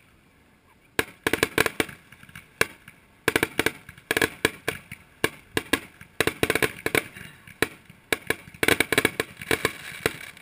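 Fireworks crackle rapidly in the sky, outdoors.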